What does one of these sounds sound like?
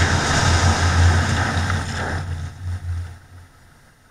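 Tyres hiss on a wet road as a car slows to a stop.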